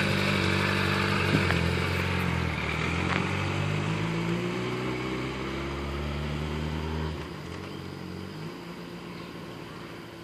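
A motorcycle rides away and its engine fades into the distance.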